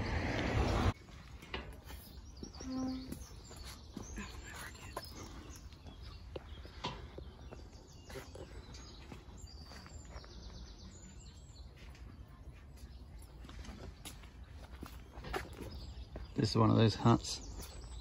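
Footsteps walk on a stone path.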